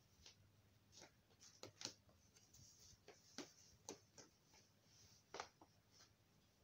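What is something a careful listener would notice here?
A phone is handled with soft knocks and taps close by.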